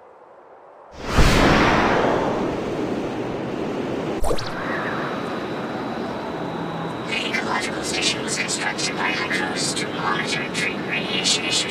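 Air roars steadily during a glide high above the ground.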